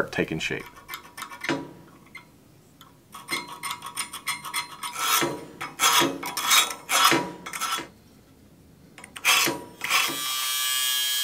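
A pencil scratches along metal in short strokes.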